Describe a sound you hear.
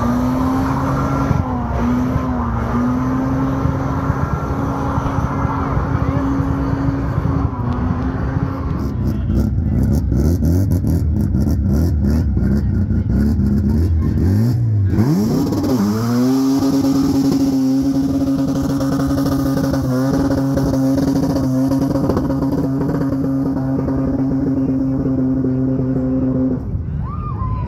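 Tyres squeal as they spin on asphalt.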